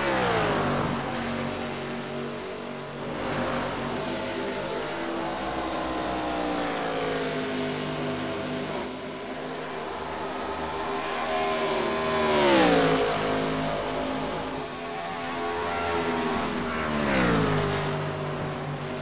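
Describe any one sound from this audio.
Race cars whoosh past one after another, their engine pitch dropping as they go by.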